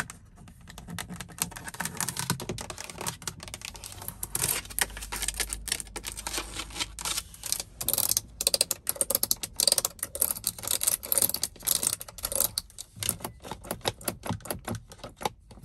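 Long fingernails tap and scratch on hard plastic up close.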